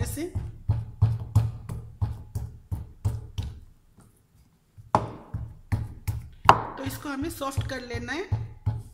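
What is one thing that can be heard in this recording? A wooden stick thumps rhythmically on soft dough against a wooden board.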